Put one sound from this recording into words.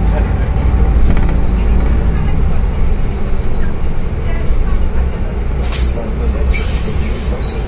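A bus engine rumbles low and steady from inside the moving bus.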